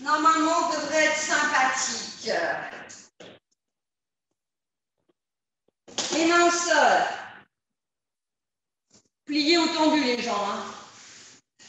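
A woman speaks with animation close to a microphone, pausing between phrases.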